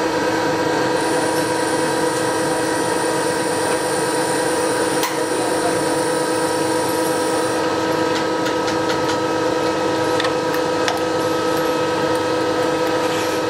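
A milling machine cutter grinds steadily into metal with a loud whine.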